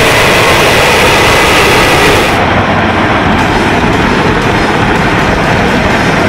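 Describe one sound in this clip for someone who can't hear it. A jet engine roars as a plane takes off.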